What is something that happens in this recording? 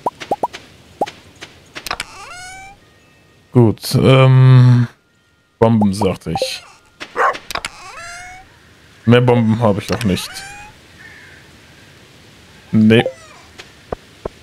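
A game menu clicks open and shut.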